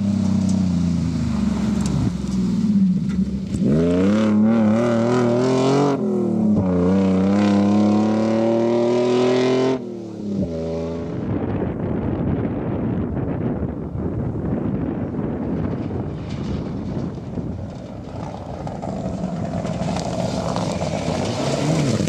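Gravel crunches and sprays under tyres.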